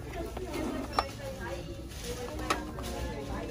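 A hand lifts a box from a plastic display with a light clack.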